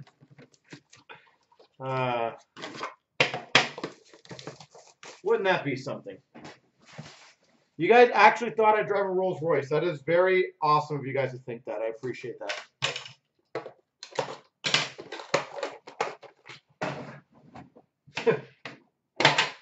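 Small boxes rustle and knock as hands handle them and set them down.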